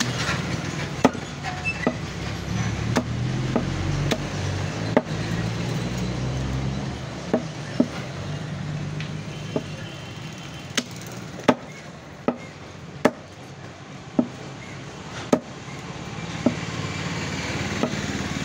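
A cleaver chops meat and bone on a wooden block with sharp thuds.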